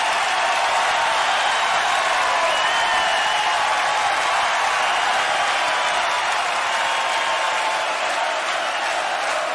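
A large crowd sings loudly together in a huge echoing arena.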